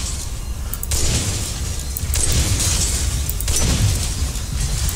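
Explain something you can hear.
A revolver fires several loud shots that echo.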